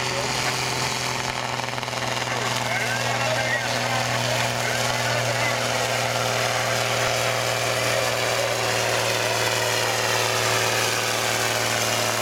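A diesel tractor roars under full load as it pulls a sled and draws closer.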